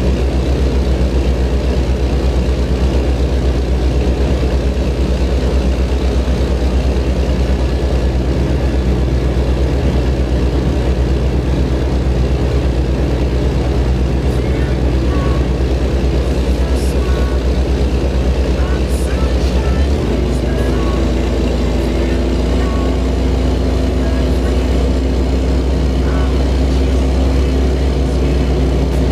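A heavy truck engine rumbles steadily.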